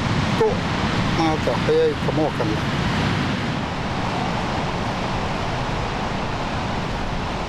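Waves wash onto a beach in the distance.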